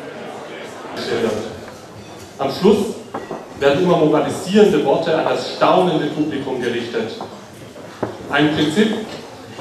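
A man reads out loud through a microphone and loudspeakers.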